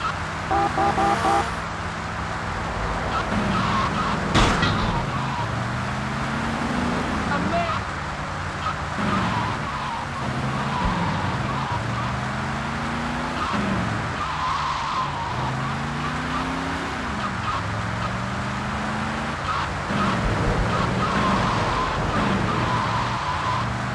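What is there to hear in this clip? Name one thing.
A car engine revs up and shifts gears over and over.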